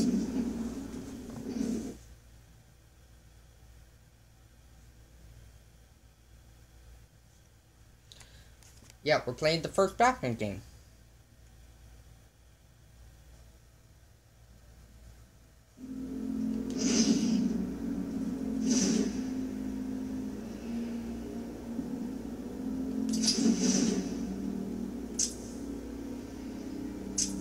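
Music and game sounds play from a television's loudspeaker.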